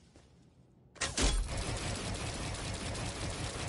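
A video game weapon fires with a loud blast.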